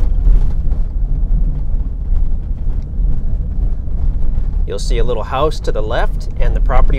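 Tyres crunch and rattle over a bumpy dirt road.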